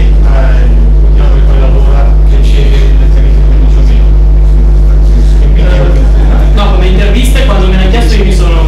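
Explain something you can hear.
Several men and women chat casually with one another nearby in a room.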